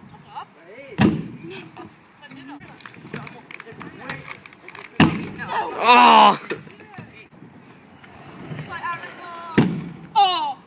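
A scooter's wheels and deck bang hard onto a wooden ramp.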